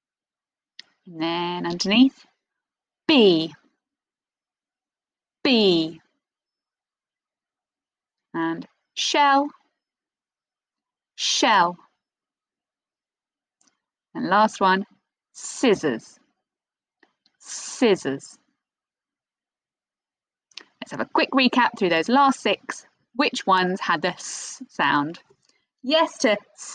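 A young woman speaks clearly and cheerfully into a microphone close by, in short bursts with pauses.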